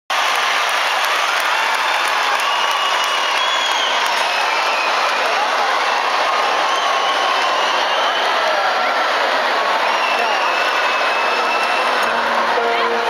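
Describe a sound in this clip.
A large crowd cheers and whistles in a big echoing hall.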